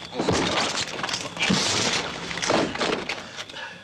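A body thuds onto the floor.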